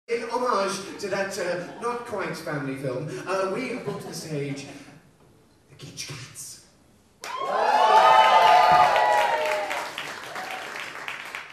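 A man sings loudly through a microphone in a reverberant hall.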